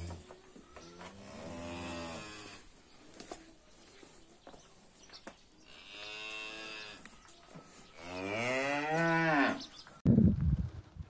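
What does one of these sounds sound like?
A cow moos loudly in long drawn-out calls.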